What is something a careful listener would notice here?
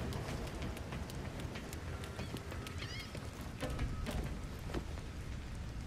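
Footsteps run quickly across a wooden roof.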